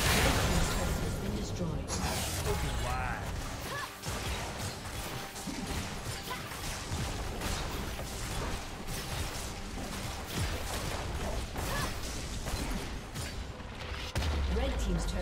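Magic blasts and weapon hits clash rapidly in a video game battle.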